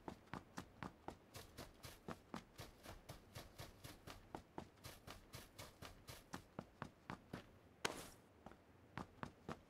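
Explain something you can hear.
Quick running footsteps thud steadily on the ground.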